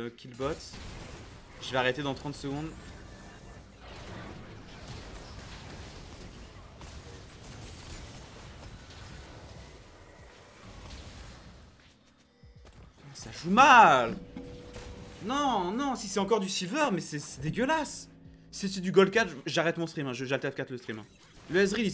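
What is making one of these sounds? Game spell effects and clashes rumble and crackle.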